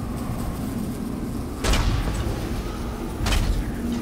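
Fiery explosions burst with deep booms.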